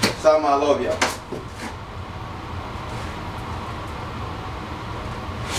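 Items knock and rustle as a man rummages.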